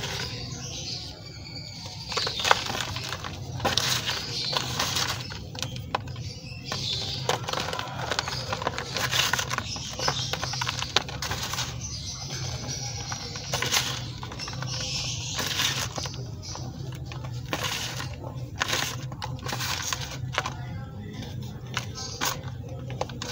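A hand crumbles chalky lumps into soft, crunching powder.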